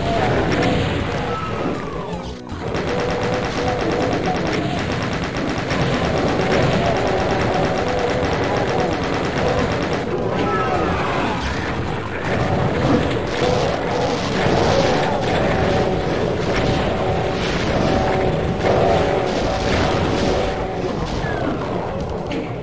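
Shotgun blasts boom repeatedly.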